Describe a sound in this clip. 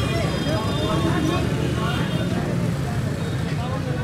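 A busy crowd murmurs outdoors with street noise.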